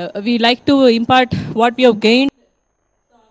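A woman speaks into a microphone with animation.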